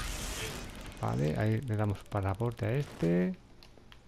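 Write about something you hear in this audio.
A silenced gun fires once.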